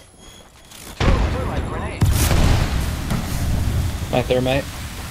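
A large explosion booms and roars with crackling fire.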